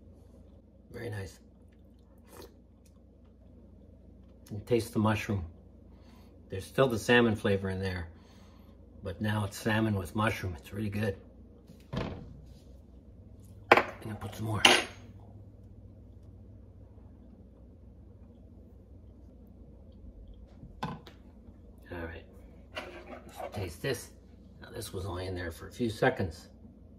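A man slurps from a spoon.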